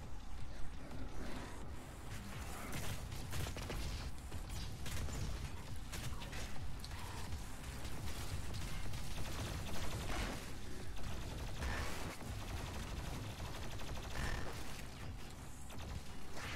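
Heavy gunfire blasts in rapid bursts.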